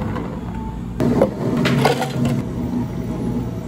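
Ice cubes clatter into a plastic cup.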